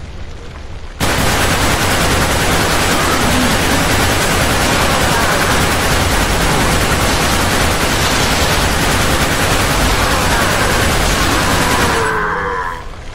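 A rifle fires in loud, rapid bursts.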